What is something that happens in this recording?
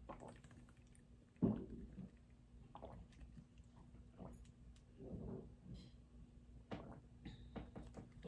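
A woman gulps down a drink.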